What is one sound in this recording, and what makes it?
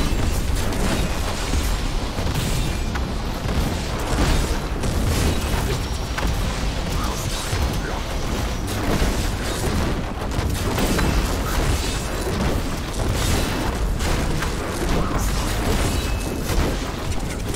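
Magic spells crackle and blast in rapid bursts.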